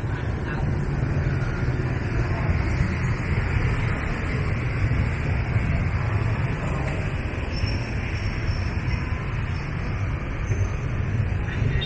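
Motorbike traffic rumbles in the distance outdoors.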